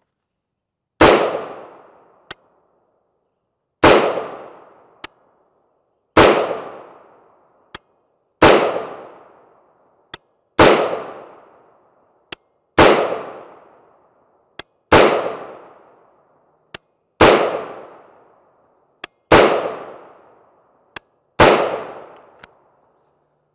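A rifle fires loud, sharp shots at a steady pace outdoors, each one echoing away.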